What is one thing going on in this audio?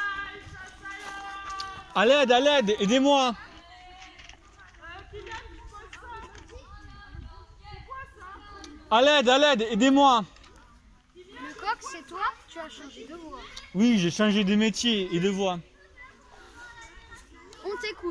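Children talk and shout excitedly close by, with loud sing-song calls in bursts.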